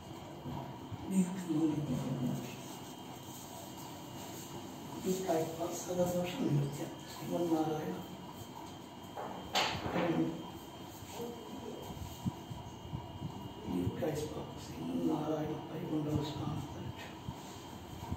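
An elderly man talks quietly nearby.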